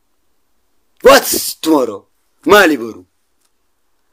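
A man speaks close to a phone microphone, in short bursts.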